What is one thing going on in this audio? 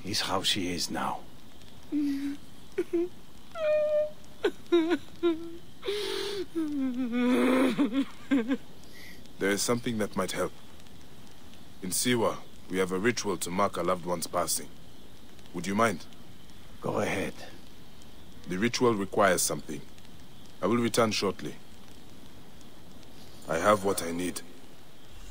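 A man speaks calmly, heard close.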